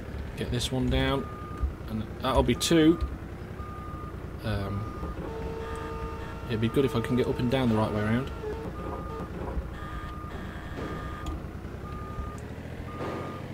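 A forklift's warning beeper sounds in short, regular beeps.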